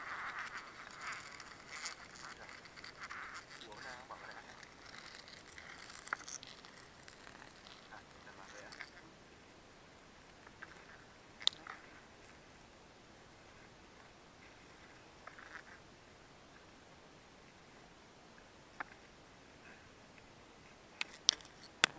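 A plastic sack rustles and scrapes as it is handled.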